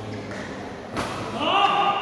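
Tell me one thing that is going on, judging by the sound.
A racket strikes a shuttlecock with a sharp crack in an echoing hall.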